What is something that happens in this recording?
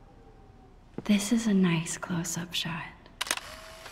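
A girl speaks calmly and close by.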